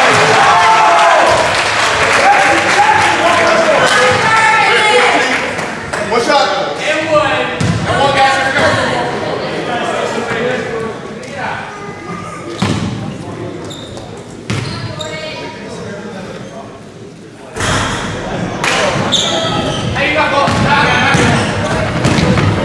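A crowd of spectators talks and cheers in an echoing gym.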